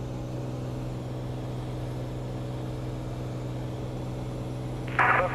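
A small plane's engine drones steadily from inside the cabin.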